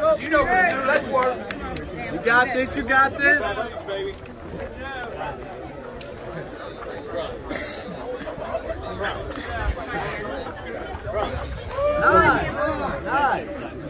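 A crowd murmurs and calls out outdoors.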